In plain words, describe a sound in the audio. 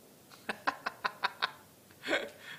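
A man laughs close by.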